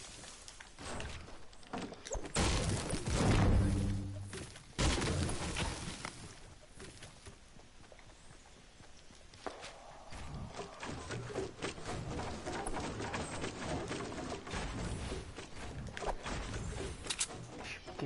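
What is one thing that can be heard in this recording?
Wooden walls snap into place with hollow thuds, one after another.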